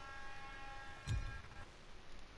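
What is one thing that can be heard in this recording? A game menu gives a deep thud as an option is picked.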